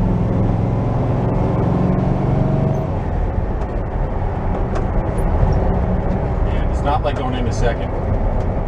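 An old van engine rumbles and drones steadily while driving.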